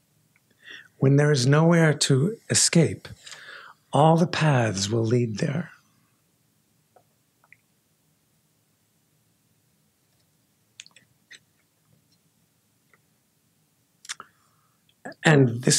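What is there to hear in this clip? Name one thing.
A middle-aged man reads aloud into a microphone in slow phrases with long pauses.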